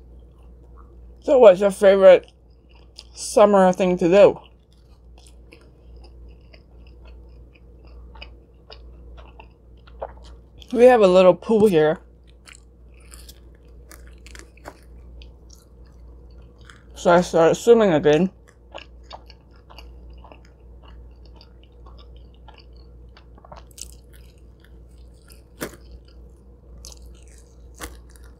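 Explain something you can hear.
Soft chewing and mouth sounds come close to a microphone.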